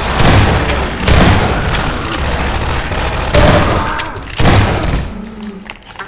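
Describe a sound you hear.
Shotgun blasts boom loudly, one after another.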